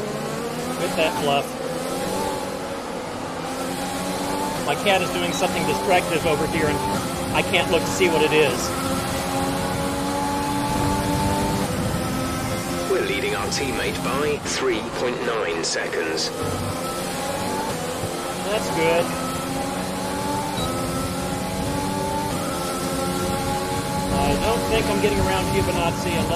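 A man speaks casually into a microphone, close by.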